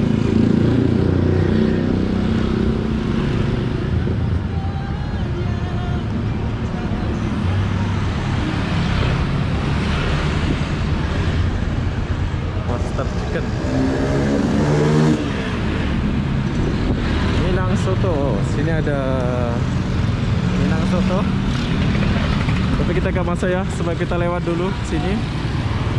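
Motorbike engines rumble past on a busy street.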